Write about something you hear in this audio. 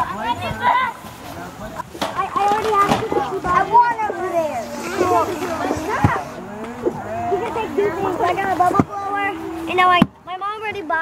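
Children chatter and shout excitedly outdoors.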